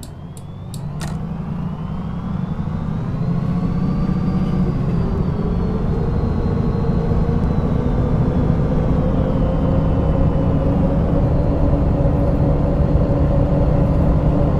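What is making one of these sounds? A bus engine rises in pitch as the bus pulls away and speeds up.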